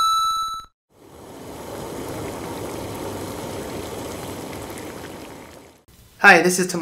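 Soup bubbles and simmers in a pot.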